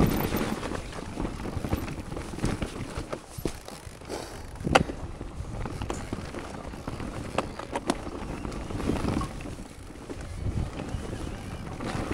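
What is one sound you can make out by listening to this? A bicycle chain and frame rattle with sharp knocks over bumps.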